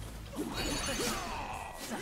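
A fiery blast bursts with a whoosh.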